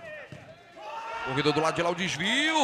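A crowd of spectators shouts and cheers.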